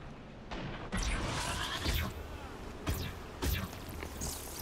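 Energy blasts crackle and burst in quick bursts.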